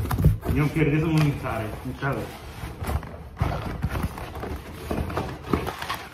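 A cardboard box rustles and knocks close by.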